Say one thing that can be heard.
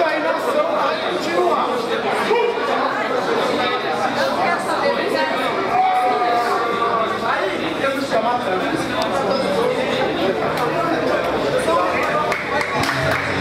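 A man shouts instructions nearby.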